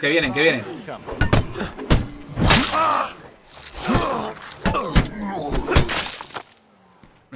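Blunt weapons thud heavily against bodies in a scuffle.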